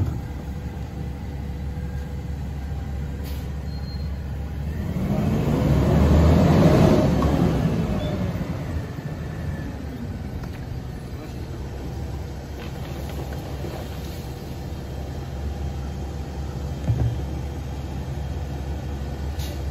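A garbage truck engine idles and rumbles steadily.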